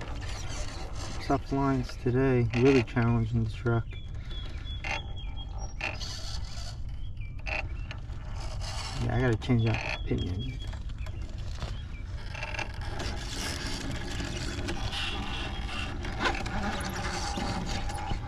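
Plastic tyres scrape and grind against rock.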